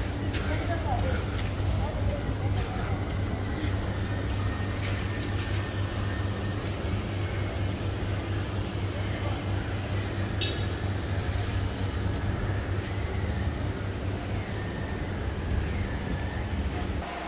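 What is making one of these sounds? City traffic hums steadily in the background outdoors.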